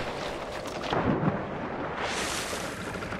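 A body drops into water with a splash.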